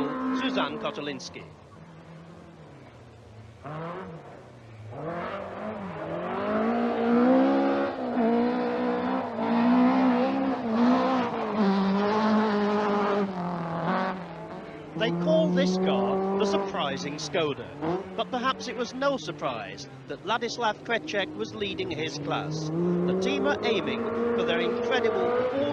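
A rally car engine roars and revs hard.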